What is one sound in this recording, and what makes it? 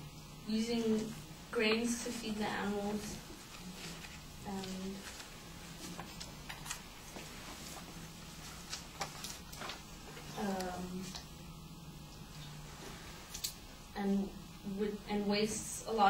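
A young woman reads aloud in a room with some echo, pausing often.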